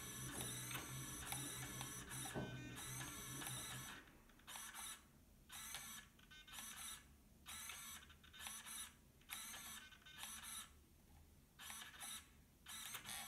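A small servo motor whirs in short bursts as it swings an arm back and forth.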